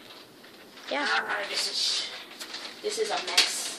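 Paper rustles as it is waved about.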